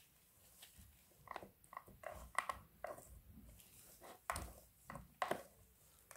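A plastic spatula scrapes and taps against a plastic tray.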